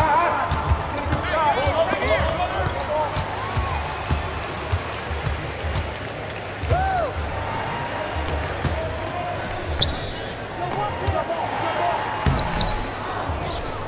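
A basketball bounces with dull, steady thumps.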